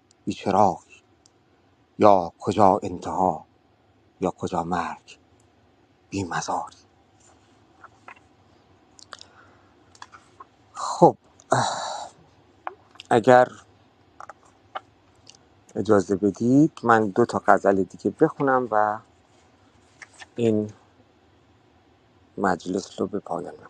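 A man speaks calmly in short bursts with pauses.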